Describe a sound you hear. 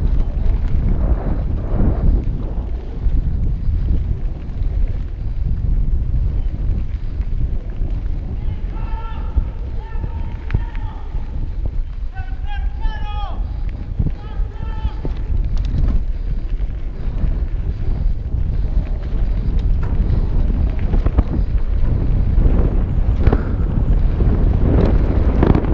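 Wind buffets loudly past the rider throughout.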